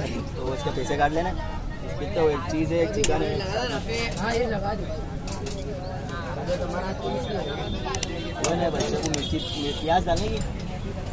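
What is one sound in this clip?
A metal spoon clinks and scrapes against a pot.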